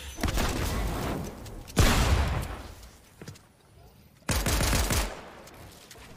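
Loud blasts of gunfire burst out.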